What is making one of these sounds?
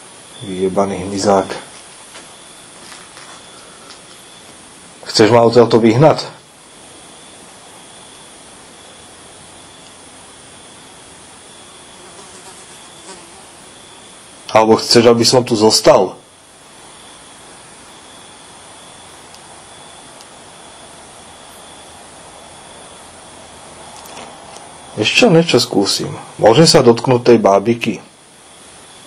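A man speaks in short bursts, close by, with quiet pauses between.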